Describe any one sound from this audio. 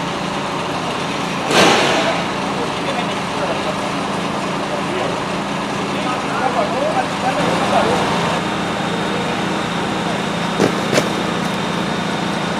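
A large fire roars and hisses steadily outdoors.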